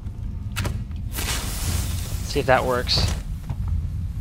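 A flare ignites and hisses.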